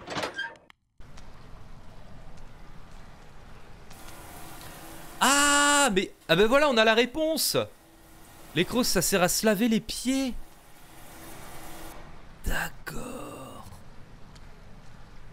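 Water sprays steadily from a shower.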